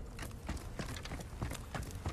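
Wooden ladder rungs creak as someone climbs.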